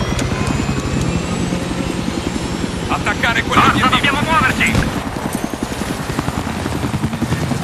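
A helicopter's rotor thumps rapidly and steadily close by.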